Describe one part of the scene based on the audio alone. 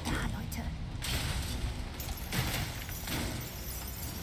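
Metal debris crashes and clatters.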